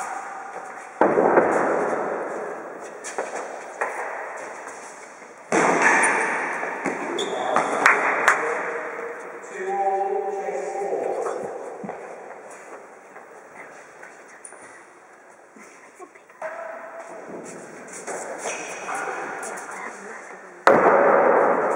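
Rackets strike a ball with sharp thwacks that echo around a large hard-walled hall.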